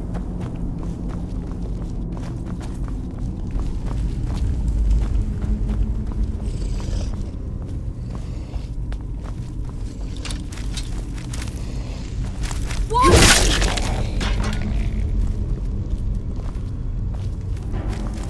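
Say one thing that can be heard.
Footsteps tread softly on stone.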